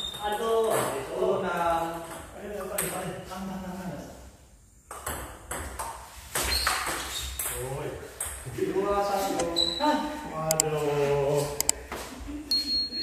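Men talk and call out loudly.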